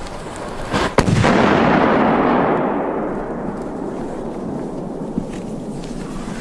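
A smoke firework bursts into a loud hiss that slowly fades.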